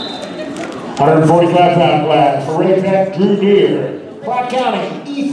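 Spectators shout loudly and cheer.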